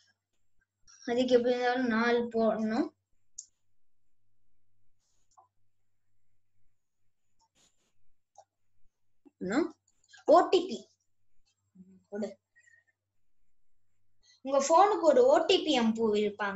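A child speaks in short bursts, close to a microphone.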